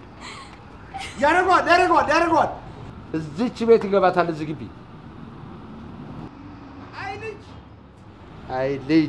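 A middle-aged man calls out loudly nearby.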